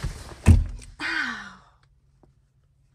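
A young woman groans close by.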